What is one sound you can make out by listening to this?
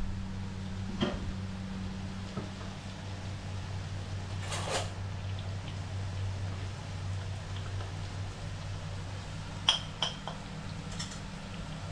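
Utensils clink against dishes and a pan.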